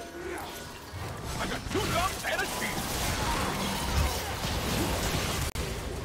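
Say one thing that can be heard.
Game spells whoosh and crackle during a fight.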